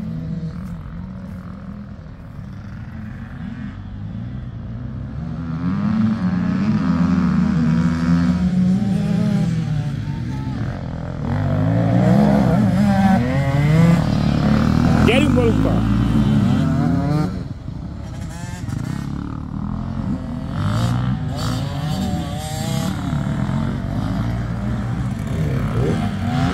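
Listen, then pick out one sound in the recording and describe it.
Dirt bike engines rev and whine loudly nearby, rising and falling in pitch.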